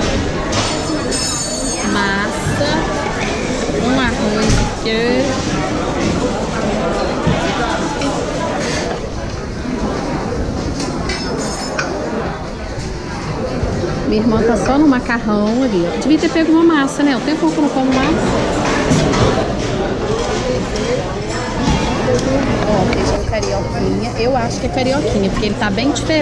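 Serving spoons clink and scrape against metal pans.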